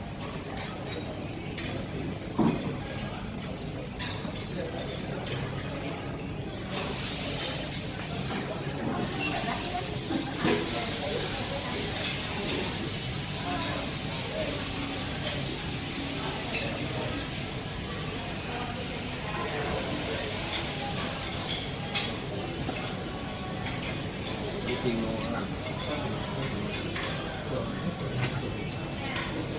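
A metal spatula scrapes and taps on a hot pan.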